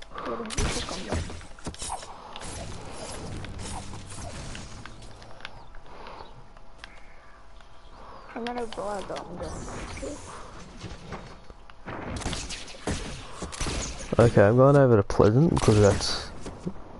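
A bow twangs as arrows are loosed.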